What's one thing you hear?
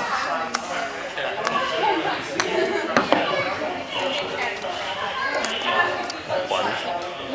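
People chatter in a large echoing hall.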